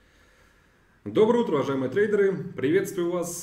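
A young man speaks calmly into a nearby microphone.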